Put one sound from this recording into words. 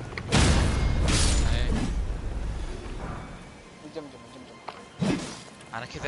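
A heavy axe whooshes through the air.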